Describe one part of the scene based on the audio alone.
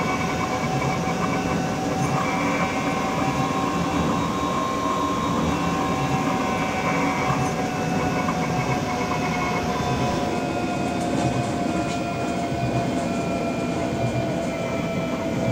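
Train wheels rumble and clack over the track.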